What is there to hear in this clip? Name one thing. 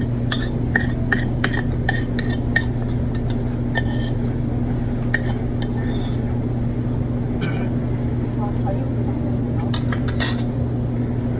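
A young man chews food with wet, smacking sounds.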